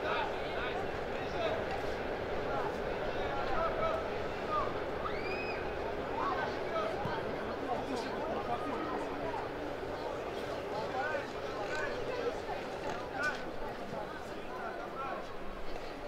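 A crowd of spectators chatters close by outdoors.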